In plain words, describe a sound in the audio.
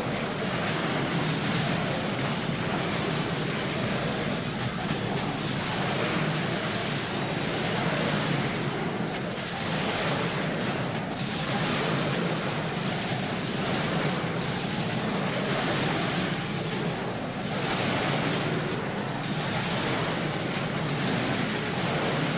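Game spells and combat effects crackle and boom.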